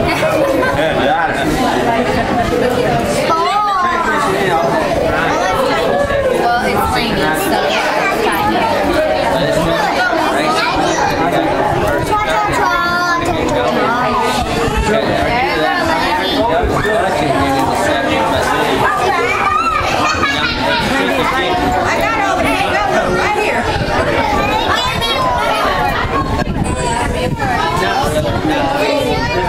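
Several adults chatter and talk at once nearby.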